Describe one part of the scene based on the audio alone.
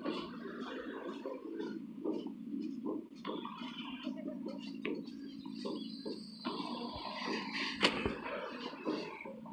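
Footsteps thud on metal stairs and hard floor at a steady pace.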